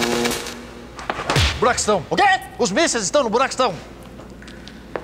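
A man speaks sternly nearby.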